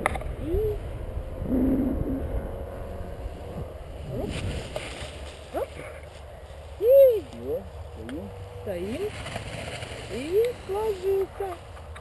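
Wind rushes and buffets past.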